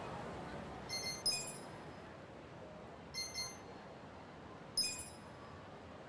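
Short electronic menu blips click in quick pairs.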